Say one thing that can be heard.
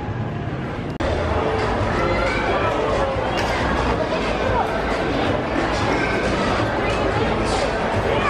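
A crowd murmurs in a large, busy room.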